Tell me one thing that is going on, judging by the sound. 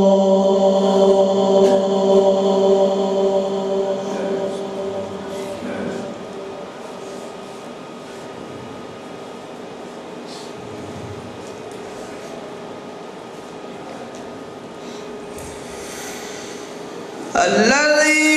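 A man chants in a long, held melody through a microphone, with some echo.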